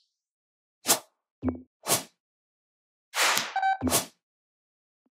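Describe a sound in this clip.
Short electronic whooshes sweep past one after another.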